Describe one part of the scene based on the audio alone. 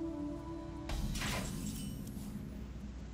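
A bright magical chime rings out as a turn begins.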